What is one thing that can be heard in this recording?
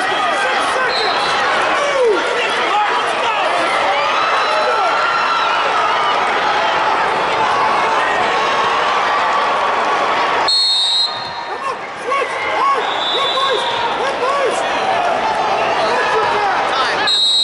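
A referee blows a whistle in short blasts.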